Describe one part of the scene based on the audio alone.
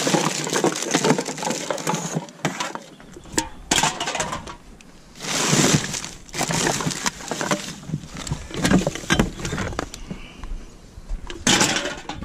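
Aluminium cans clink and rattle.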